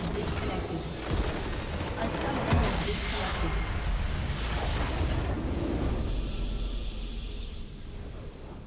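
A huge crystal structure bursts apart with a deep, roaring blast.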